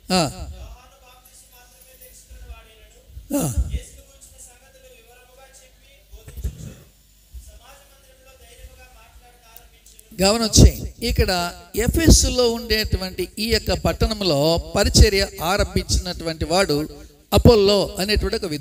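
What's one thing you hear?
An elderly man speaks through a microphone, softly at first and then loudly and with animation.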